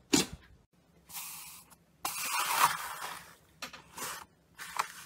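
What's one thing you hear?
A hand presses into crunchy bead-filled slime, crackling.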